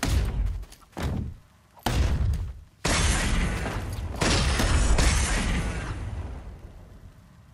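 Heavy punches and kicks land with loud thuds in a brawl.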